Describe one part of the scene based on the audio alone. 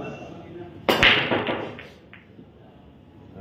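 Pool balls clatter and roll across a table.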